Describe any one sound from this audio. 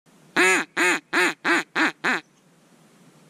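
A duck call is blown in short, rapid quacking bursts.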